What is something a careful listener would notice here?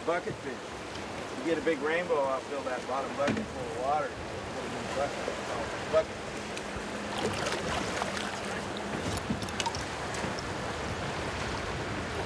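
A river rushes and swirls steadily close by.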